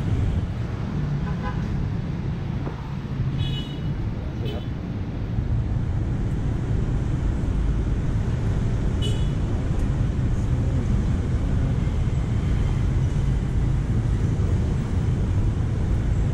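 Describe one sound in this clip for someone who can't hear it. Traffic rumbles past steadily on a nearby road.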